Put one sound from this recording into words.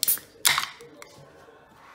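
A can's tab pops open with a sharp hiss of gas.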